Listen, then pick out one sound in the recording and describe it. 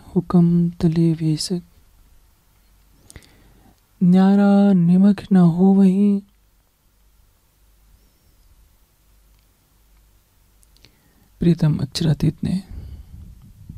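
An elderly man chants in a steady, drawn-out voice through a microphone, with pauses between phrases.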